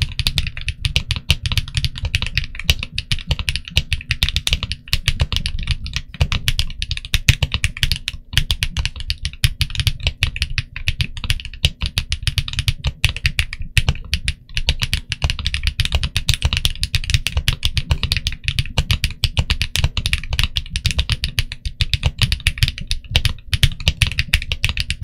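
Fingers type quickly on a mechanical keyboard, with a rapid run of sharp, deep clacks close by.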